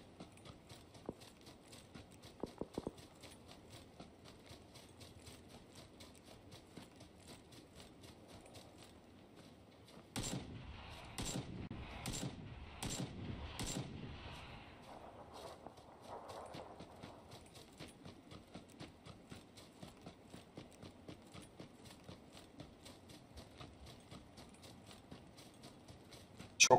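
Footsteps run steadily over grass.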